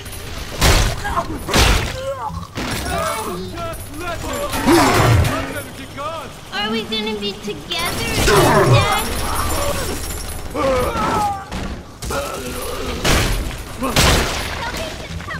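Heavy blows thud and crash.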